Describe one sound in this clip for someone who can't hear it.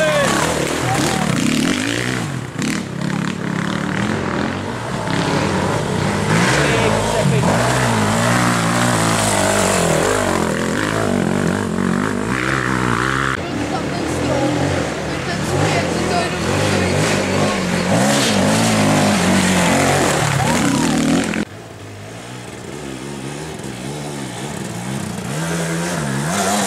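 A dirt bike engine revs hard and roars as it climbs.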